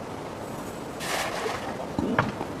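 A fishing net splashes down onto water.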